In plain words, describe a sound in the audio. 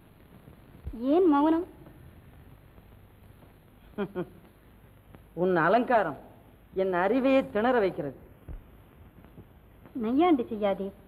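A woman speaks with feeling, in short bursts, close by.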